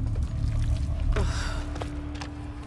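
A young woman grunts with effort close by.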